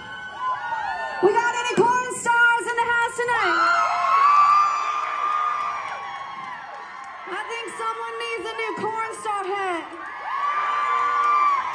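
A young woman sings loudly into a microphone over a loudspeaker system.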